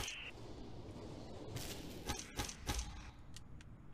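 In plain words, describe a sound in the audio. Brittle shards shatter and tinkle.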